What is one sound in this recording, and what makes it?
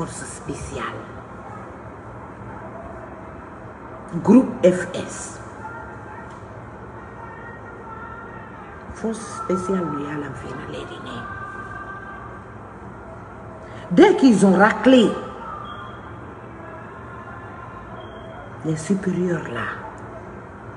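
A middle-aged woman speaks with animation close to a microphone, in short bursts with pauses.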